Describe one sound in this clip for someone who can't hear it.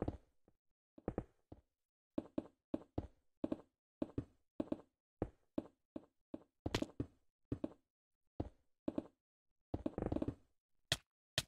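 Blocks are placed in quick thumps, one after another.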